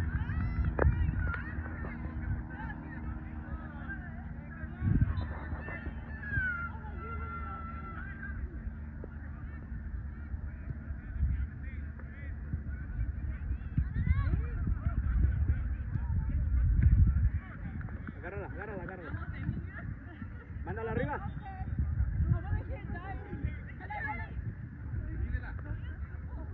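Young women shout and call to each other across an open field.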